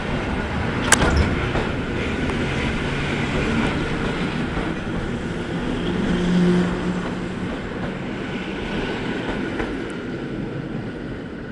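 A train rumbles along the tracks close by and slowly fades.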